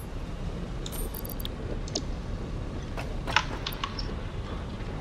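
Short electronic clicks and soft chimes sound.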